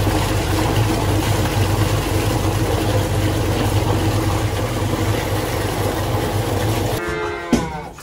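A machine mixer whirs and hums loudly.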